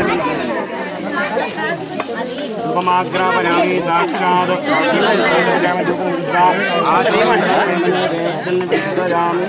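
A crowd of men and women chant and sing together nearby.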